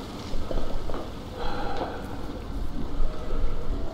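Footsteps clang on a metal grating.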